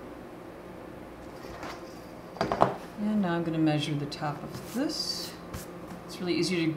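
A metal ruler is laid down and slides on paper.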